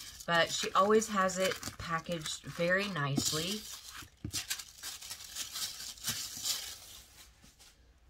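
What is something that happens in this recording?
A plastic bag rustles and crinkles as hands handle it.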